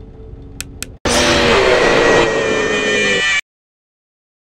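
A loud, harsh electronic scream blares suddenly and cuts off.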